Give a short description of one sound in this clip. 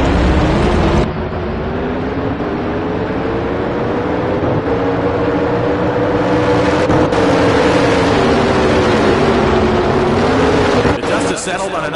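A drag racing engine screams at full throttle as the car speeds down the strip, its pitch rising and falling.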